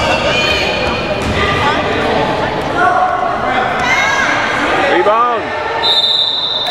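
Young players call out across the court.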